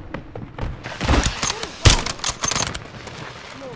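Single rifle shots crack sharply.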